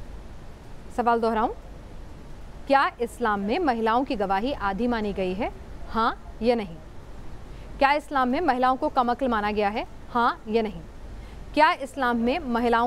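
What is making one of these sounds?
A woman speaks with animation over a remote call.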